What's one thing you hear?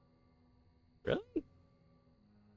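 A boy briefly exclaims close to a microphone.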